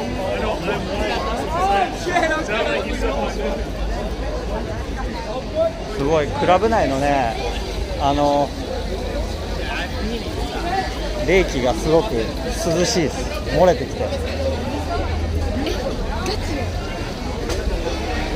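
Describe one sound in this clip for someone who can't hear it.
A crowd of young people chatters all around outdoors.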